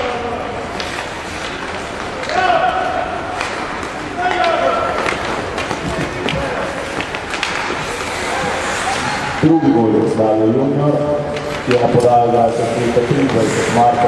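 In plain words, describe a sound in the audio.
Hockey sticks click against the puck.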